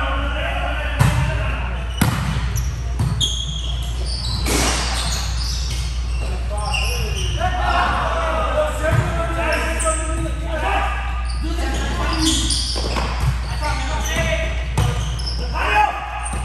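A volleyball thumps off players' hands and arms in a large echoing gym.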